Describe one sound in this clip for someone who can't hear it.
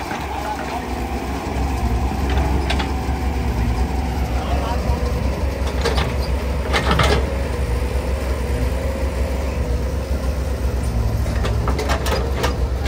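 Mud and clods thud and scrape as an excavator bucket digs.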